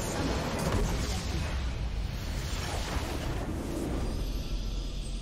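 A large structure crumbles in a loud, rumbling explosion.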